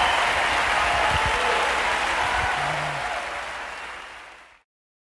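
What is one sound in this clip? A large audience claps in a big hall, then the applause fades away.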